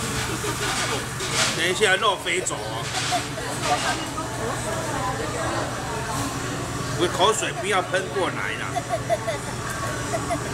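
A young boy laughs and chatters close by.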